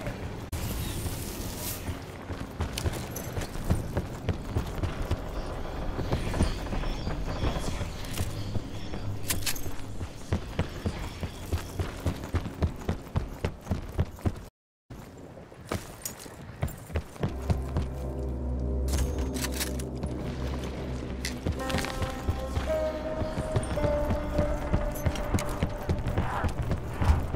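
Footsteps thud quickly across a wooden deck.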